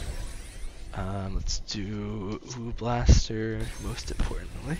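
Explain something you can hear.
Chimes ring as upgrade cards pop up.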